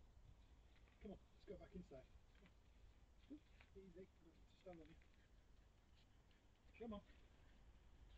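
A man speaks softly in short bursts outdoors, some distance away.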